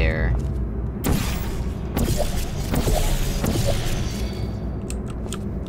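A portal whooshes open and closed.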